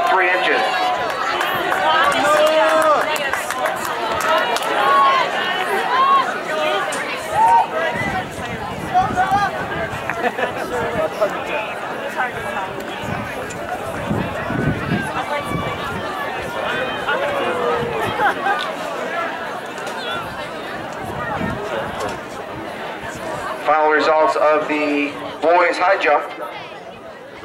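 A crowd of people chatters and cheers in the open air.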